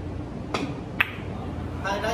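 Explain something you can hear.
Billiard balls click against each other.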